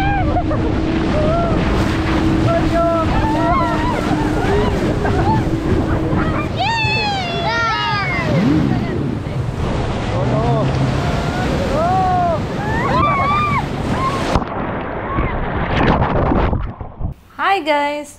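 Water splashes and rushes loudly around an inflatable ride.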